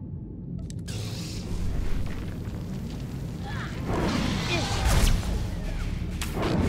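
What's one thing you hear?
A lightsaber hums and swooshes as it swings in a fight.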